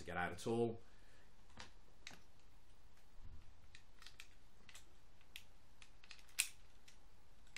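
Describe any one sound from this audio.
Plastic toy parts click and snap as they are moved.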